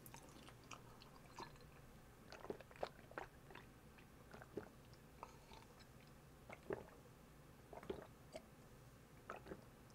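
A young man sips and swallows a drink close to a microphone.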